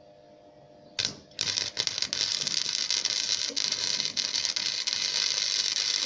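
An arc welder crackles and sizzles steadily close by.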